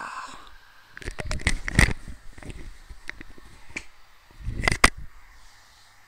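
A young man laughs in short bursts.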